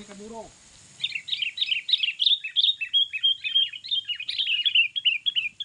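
A bird chirps rapidly nearby.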